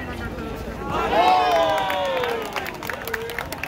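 Spectators cheer loudly after a point.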